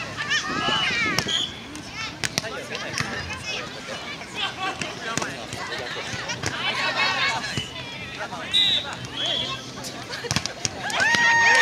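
Young people call out to one another outdoors.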